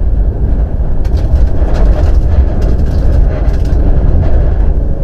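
Stones clatter against the underside of the car.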